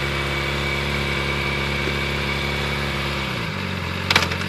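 A motorcycle engine idles with a deep rumble.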